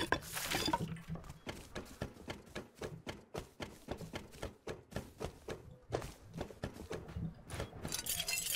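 Footsteps clang quickly on a metal floor.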